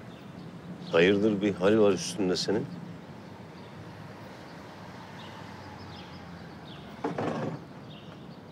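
A middle-aged man speaks firmly nearby.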